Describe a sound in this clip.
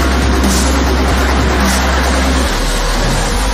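A car engine roars loudly at speed.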